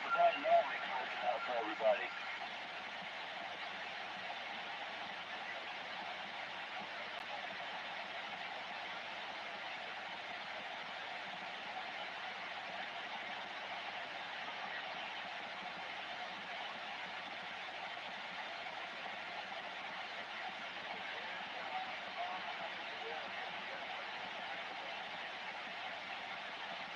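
A radio hisses with steady static through its loudspeaker.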